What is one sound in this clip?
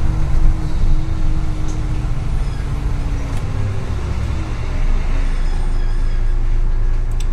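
The bus rattles gently as it drives and turns.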